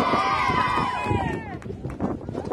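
Girls in a team huddle cheer and shout together.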